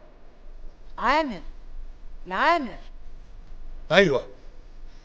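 A middle-aged man calls out loudly in short, drawn-out sung phrases.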